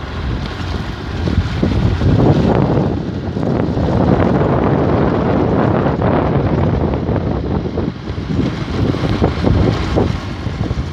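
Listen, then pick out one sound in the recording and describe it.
Tyres rumble over cobblestones.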